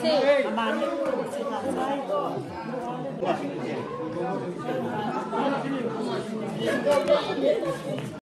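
Children shout and laugh nearby.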